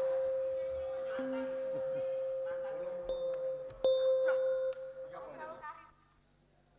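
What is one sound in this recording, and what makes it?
A live band plays loud music through loudspeakers.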